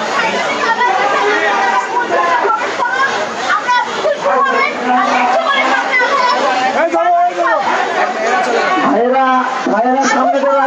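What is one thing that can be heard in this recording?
A large crowd of young men and women shouts and chants loudly outdoors.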